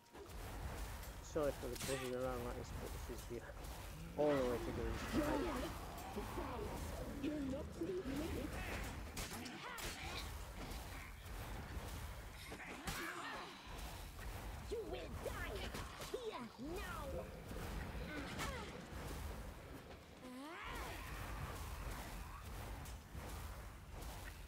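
Swords swish and clash in a fight.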